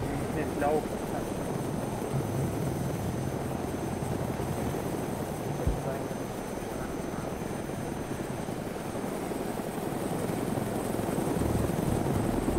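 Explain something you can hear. A helicopter's rotor thumps and roars steadily.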